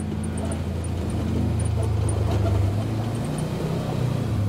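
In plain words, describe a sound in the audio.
Tyres crunch on a gravel road.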